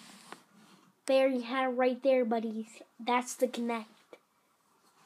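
A young boy talks excitedly, close by.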